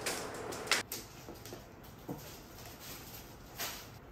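Bare feet pad softly across a wooden floor.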